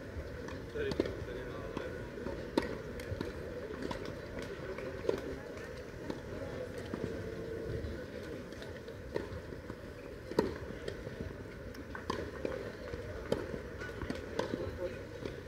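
Tennis balls are struck with rackets.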